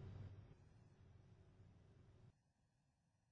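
A helicopter's rotor drones loudly.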